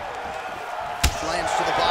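A kick lands with a sharp smack.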